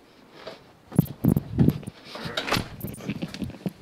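Footsteps thud on the floor.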